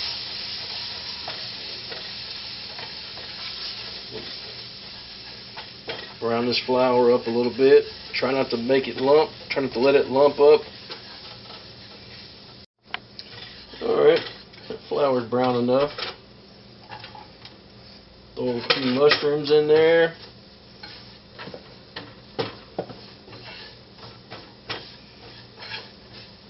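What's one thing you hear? Food sizzles softly in a hot frying pan.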